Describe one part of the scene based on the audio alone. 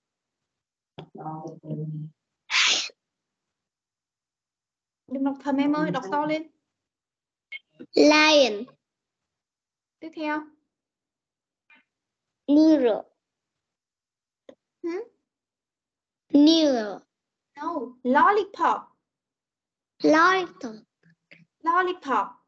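A young boy repeats words over an online call.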